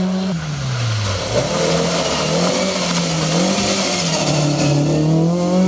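A third rally car engine roars up close as the car passes.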